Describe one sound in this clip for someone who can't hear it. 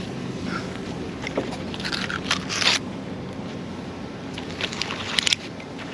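Muddy debris squelches and drips as it is pulled from the water.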